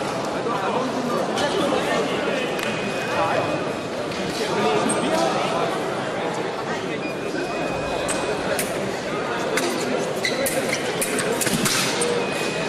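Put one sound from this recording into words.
Fencers' feet tap and shuffle on the floor.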